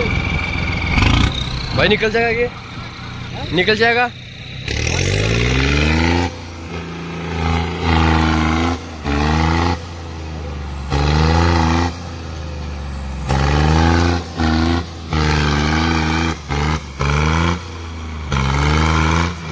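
A tractor engine roars and revs hard.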